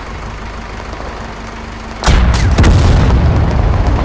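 An armoured vehicle's engine rumbles.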